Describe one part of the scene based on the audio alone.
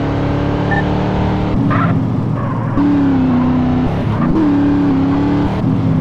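Tyres screech on asphalt as a car skids around a corner.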